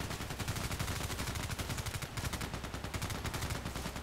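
A rifle fires several shots in quick succession.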